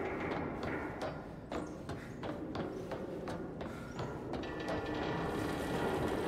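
Footsteps clank up metal stairs.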